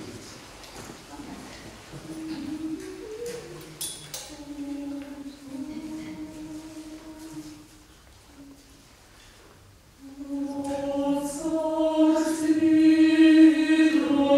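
A mixed choir sings in an echoing hall, pausing briefly and then swelling loudly.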